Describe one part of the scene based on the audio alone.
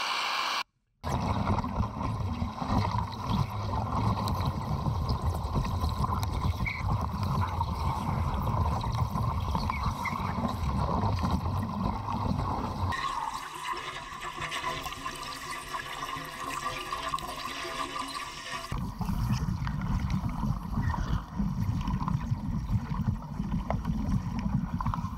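An underwater cutting torch crackles and roars.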